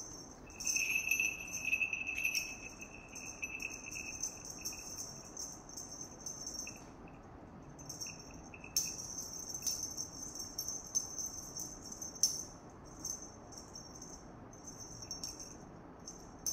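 A kitten's paws patter and skid on a tile floor.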